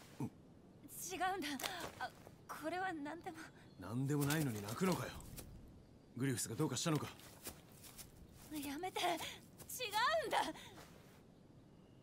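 A young woman speaks in a strained, tearful voice.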